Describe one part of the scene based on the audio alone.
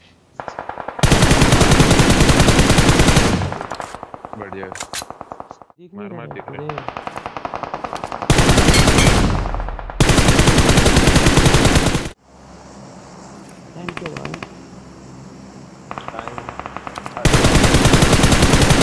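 Rifle shots fire in rapid bursts.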